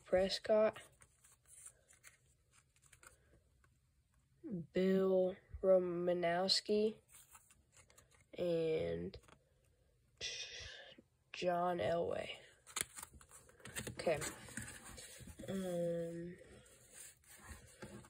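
Trading cards rustle and slide against each other close by.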